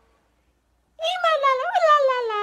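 A young woman gasps in surprise.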